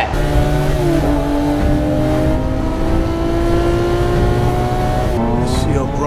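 A sports car engine roars loudly as the car speeds down a street.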